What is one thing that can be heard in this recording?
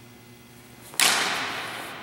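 Swords clash sharply with a ringing echo.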